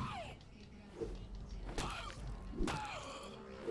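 A blade slashes and strikes with sharp impacts.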